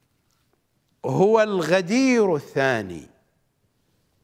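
A middle-aged man speaks with feeling, close to a microphone.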